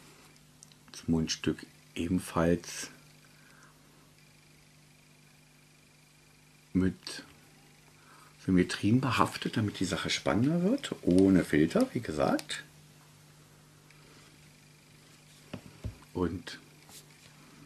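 A middle-aged man speaks calmly, close by, with pauses.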